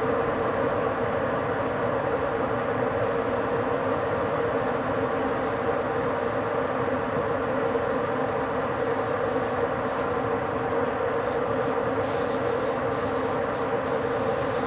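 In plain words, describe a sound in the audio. A train rolls steadily along the rails at speed, with a constant rumbling drone.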